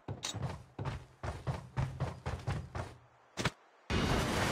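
Footsteps thud quickly across a wooden floor.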